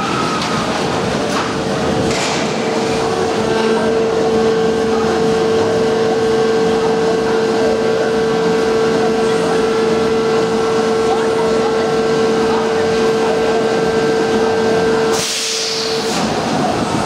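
A roller coaster train is hauled up a steep lift with a steady mechanical whine.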